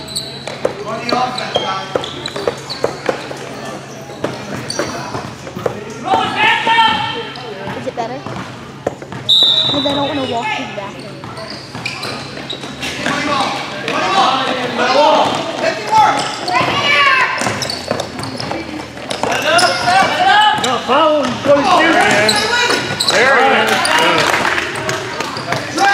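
Nearby spectators talk and cheer loudly.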